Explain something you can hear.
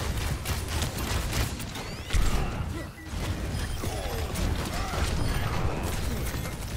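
Explosions and impact effects crack and thump.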